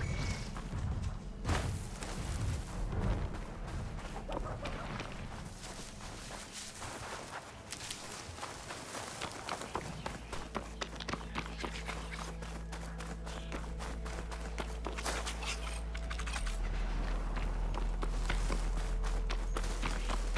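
Quick footsteps run over dry dirt and grass.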